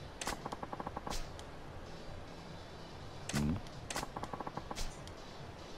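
Short electronic blips tick rapidly in quick bursts.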